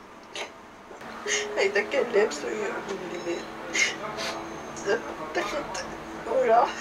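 A middle-aged woman speaks tearfully nearby.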